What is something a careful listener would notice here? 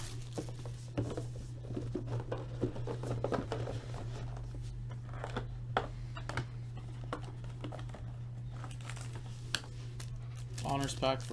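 Cardboard and plastic wrapping rustle and tap as a box is handled.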